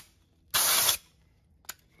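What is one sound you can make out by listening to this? Compressed air hisses in a short, loud burst.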